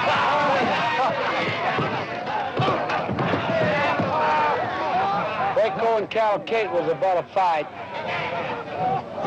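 A crowd of men and women cheers and shouts outdoors.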